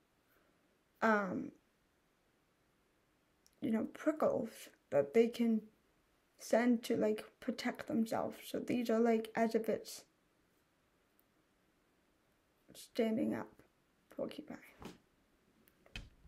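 A young woman talks calmly and close by, in short bursts with pauses.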